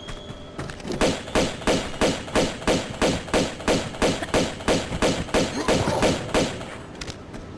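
Pistol shots fire in rapid bursts.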